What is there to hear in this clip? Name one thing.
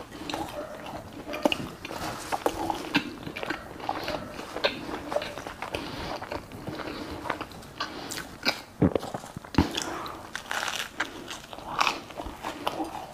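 A man chews loudly with his mouth close to a microphone.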